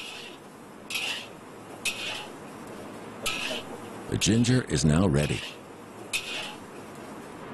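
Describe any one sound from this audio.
A metal spatula scrapes and knocks against a wok.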